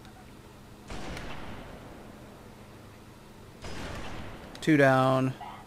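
A rifle fires a few muffled shots.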